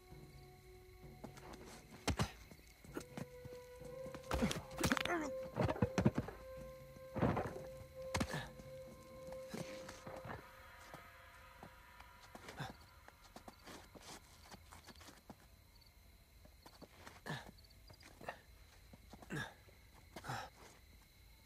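Hands grab at stone ledges with short, soft thumps.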